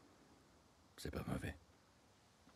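A man says a few words in a low, calm voice, close by.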